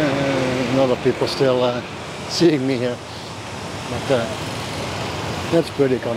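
A motor scooter rides past.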